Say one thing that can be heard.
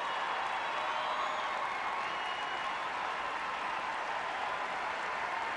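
A large crowd in an echoing arena cheers and applauds loudly.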